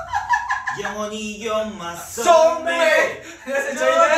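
Young men laugh loudly together.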